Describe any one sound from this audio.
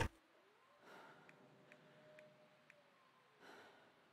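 Soft menu clicks tick quietly.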